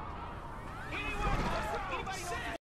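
A body thuds in a sudden scuffle.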